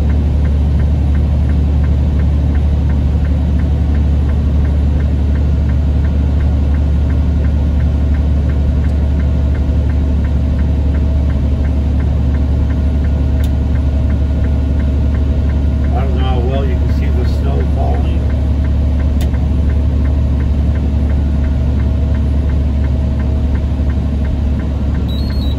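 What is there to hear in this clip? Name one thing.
Wind roars outside the car in a snowstorm.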